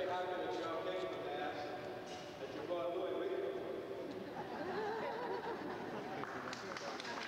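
A group of people sing together in a large echoing hall.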